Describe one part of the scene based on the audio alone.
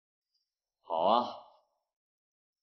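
Another young man answers briefly in a quiet voice.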